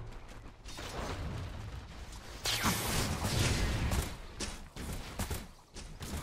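Magic blasts crackle and whoosh in a fight.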